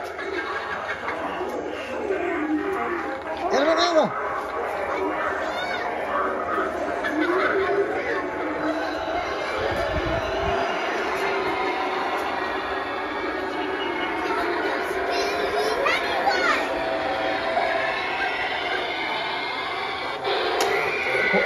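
Animatronic figures play eerie, warbling recorded sounds that rise and fall.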